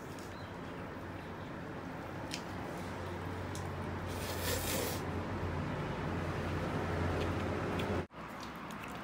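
A woman chews and gnaws on meat.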